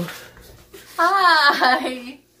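A young woman laughs loudly nearby.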